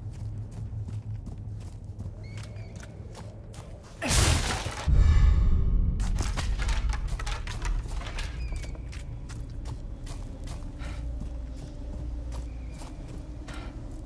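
Footsteps crunch on gravel and stone.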